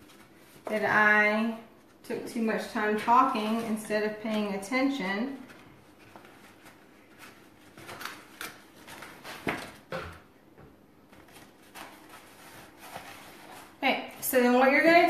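Stiff paper rustles and crinkles.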